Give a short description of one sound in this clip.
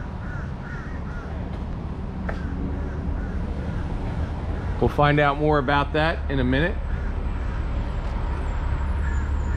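A large electric fan hums steadily.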